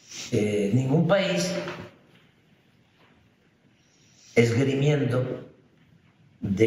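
An elderly man speaks calmly and slowly into a microphone, with long pauses.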